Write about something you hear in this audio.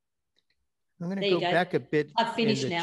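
A middle-aged woman speaks calmly and close to a microphone.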